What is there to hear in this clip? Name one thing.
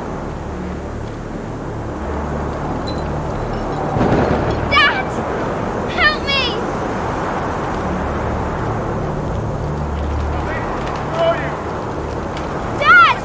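Wind roars steadily outdoors.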